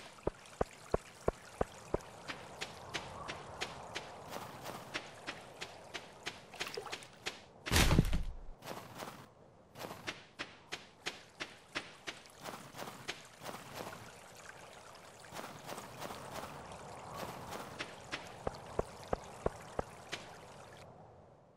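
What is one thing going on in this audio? Footsteps crunch quickly and steadily over snow.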